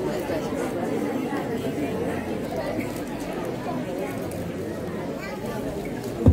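A group of young children sing together, heard in a large hall.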